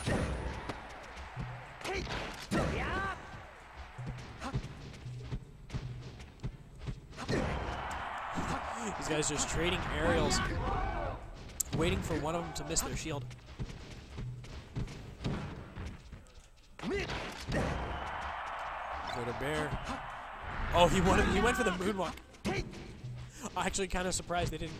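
Punches, kicks and blasts from a fighting video game crack and thump in quick bursts.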